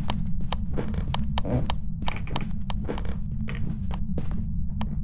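Footsteps thud down wooden stairs in a quick, even rhythm.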